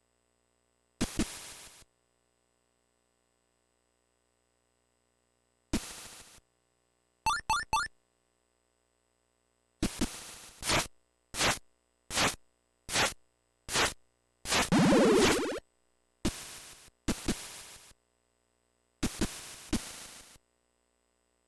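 Short electronic game sound effects blip and buzz in bursts.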